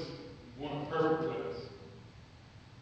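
A man speaks calmly into a microphone in an echoing hall.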